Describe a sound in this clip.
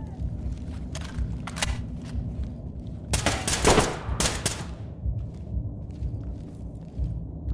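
Heavy footsteps thud steadily on a hard floor.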